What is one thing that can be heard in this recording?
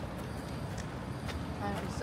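Footsteps of two people walking pass by on paving outdoors.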